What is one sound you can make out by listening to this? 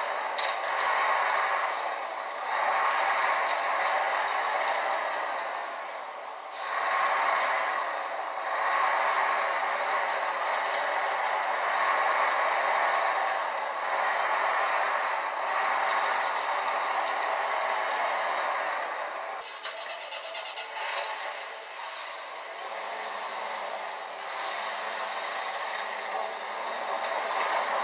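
A heavy truck engine rumbles through small laptop speakers.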